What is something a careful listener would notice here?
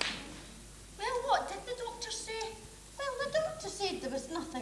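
Two women talk with each other, heard from a distance across a large room.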